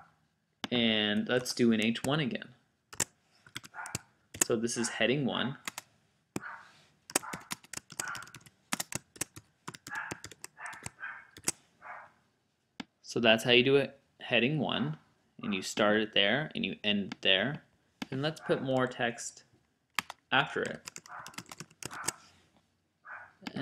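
Computer keys click in quick bursts of typing.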